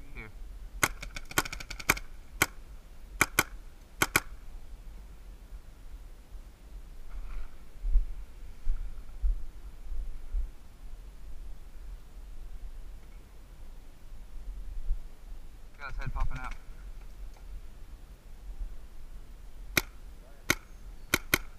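Paintball guns fire in quick, sharp pops, in short bursts.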